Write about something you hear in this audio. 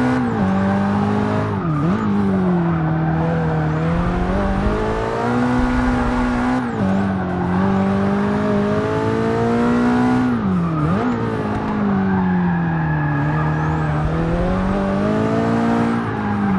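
A sports car engine roars loudly, rising and falling in pitch as it shifts gears.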